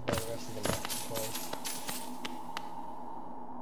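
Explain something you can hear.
Light footsteps patter quickly on a hard floor.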